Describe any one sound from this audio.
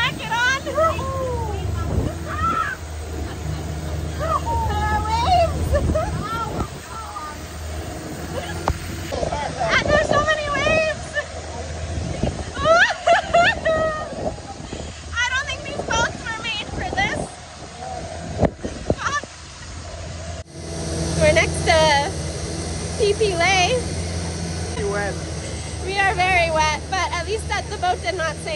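A boat engine drones steadily.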